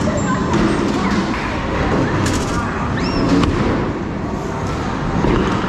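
A bowling ball rumbles along a wooden lane.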